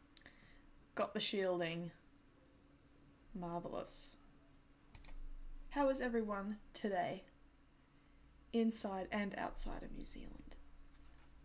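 A young woman talks casually into a close microphone, in short bursts.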